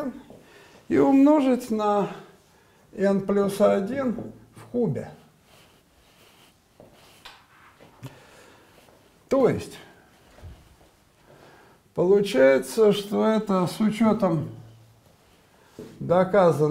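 An elderly man speaks calmly.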